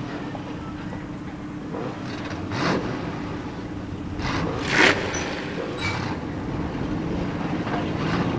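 Tyres splash through water on the track.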